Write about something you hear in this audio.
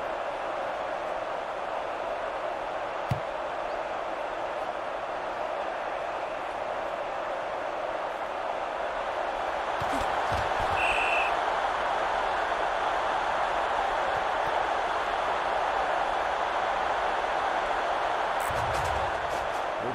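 A large stadium crowd roars.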